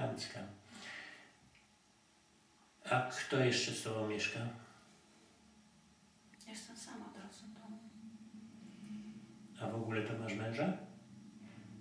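An elderly man speaks softly and closely, in short bursts with pauses.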